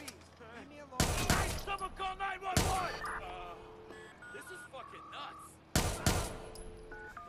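A rifle fires several loud, echoing shots.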